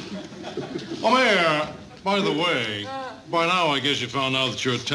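An older man speaks loudly and theatrically, up close.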